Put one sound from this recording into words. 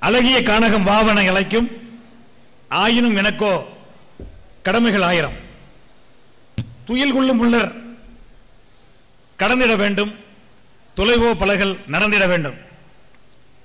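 A middle-aged man speaks with animation in short bursts through a microphone and loudspeakers.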